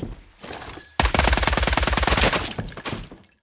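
A rifle fires a loud shot that echoes.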